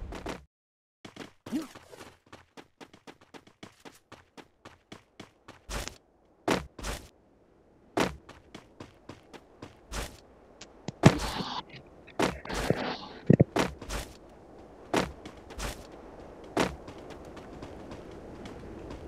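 Quick footsteps run over grass.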